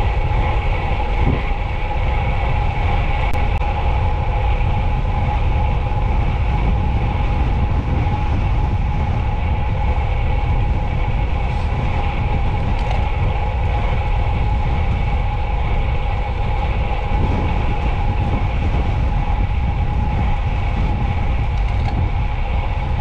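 Wind rushes and buffets loudly past a cyclist outdoors.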